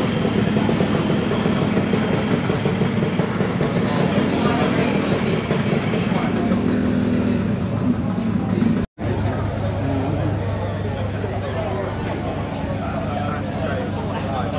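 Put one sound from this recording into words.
A crowd of men and women chatters nearby.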